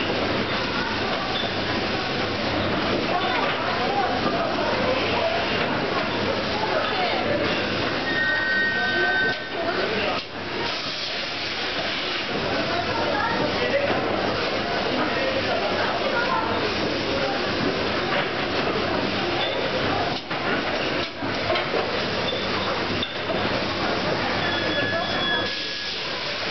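Packaging machinery whirs and clatters steadily.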